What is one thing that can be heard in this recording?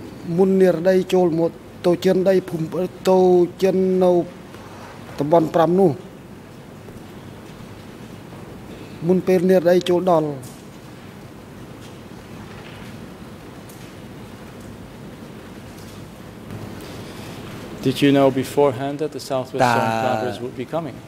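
A middle-aged man speaks calmly into a microphone, in short phrases with pauses.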